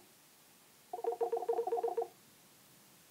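Short bubbly game sounds patter as rewards are collected.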